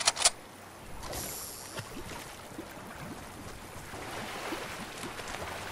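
Water splashes as a figure wades and swims through it.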